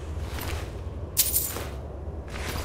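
Coins clink briefly.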